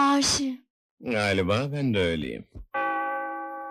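A man talks in a low voice.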